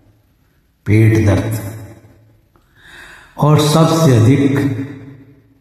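An elderly man sings close to a phone microphone, holding long notes.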